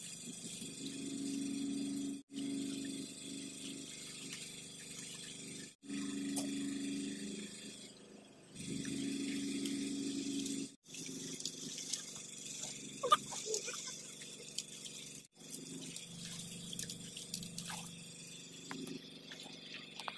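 Wet clothes slosh and squelch in a pot of water.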